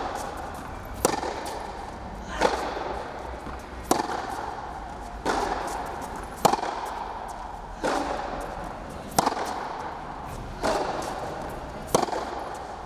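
Tennis balls are struck back and forth with sharp pops that echo around a large hall.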